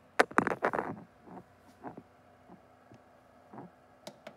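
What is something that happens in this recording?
Buttons click on an oven's control panel.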